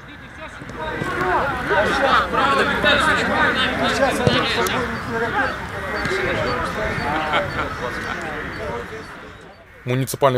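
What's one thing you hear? Young men shout and call to one another outdoors.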